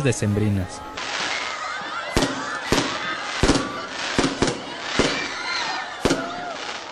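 Fireworks whistle as they shoot up.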